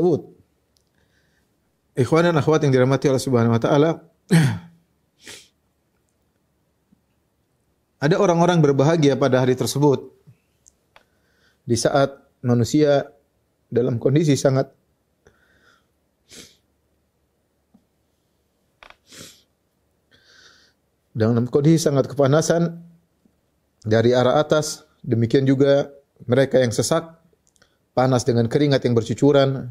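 A man reads aloud in a calm, chanting voice close to a microphone, pausing between phrases.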